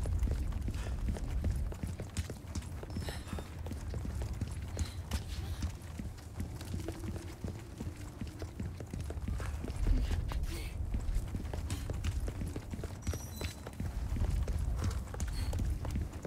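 Footsteps tread steadily on stone.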